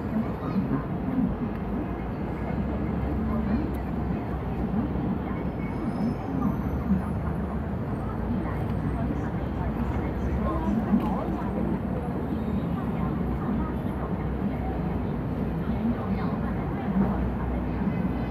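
A crowd murmurs in the distance outdoors.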